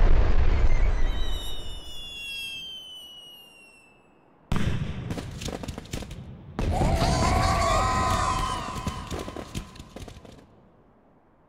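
Fireworks boom and crackle overhead.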